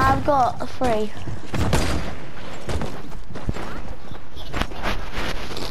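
Sharp blasts and clatter of video game combat ring out.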